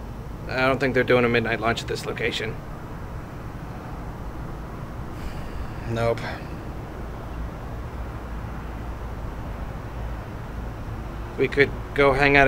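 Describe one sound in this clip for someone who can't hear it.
A man speaks nearby in a high, playful puppet voice, in short bursts.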